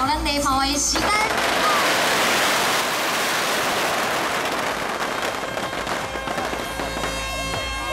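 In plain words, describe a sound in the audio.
Firecrackers crackle and pop in a dense, continuous barrage.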